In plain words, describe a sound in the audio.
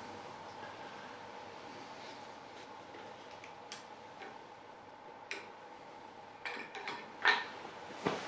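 A drill press knob clicks as it is turned.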